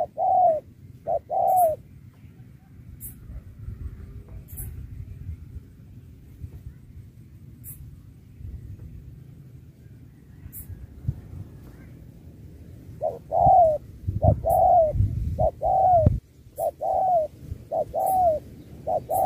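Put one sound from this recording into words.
Doves coo in repeated short calls, close by.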